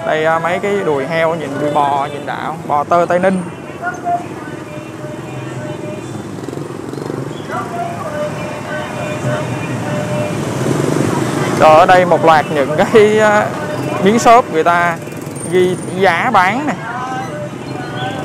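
Men and women talk and call out close by outdoors.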